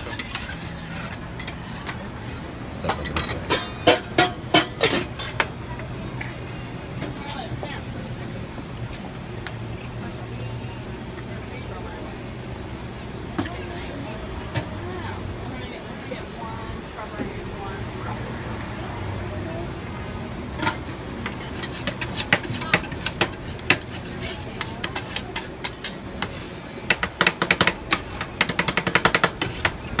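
Metal spatulas scrape and tap rapidly on a cold metal plate.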